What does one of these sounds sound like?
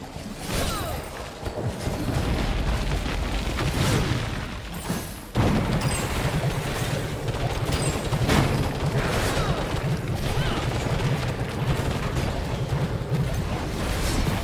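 Spells crackle and burst in a fast fantasy battle.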